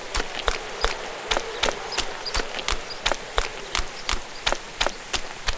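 Footsteps crunch quickly and evenly on a gravel road.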